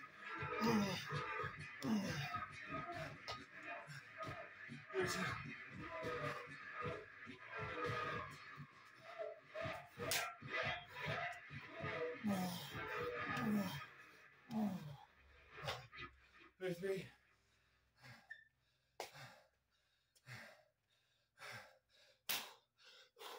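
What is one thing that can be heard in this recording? Feet thud on a floor mat.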